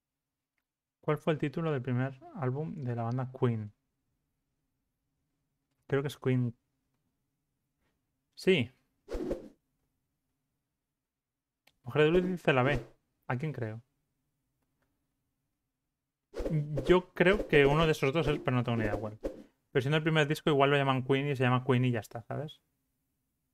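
A young man talks with animation into a close microphone, in bursts with pauses.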